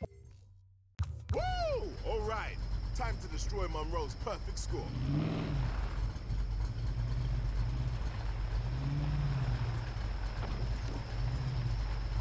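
A car engine rumbles and revs up and down.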